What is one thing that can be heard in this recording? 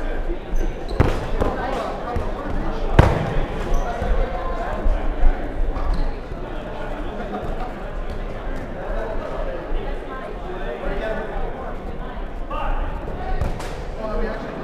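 A ball bounces on the court.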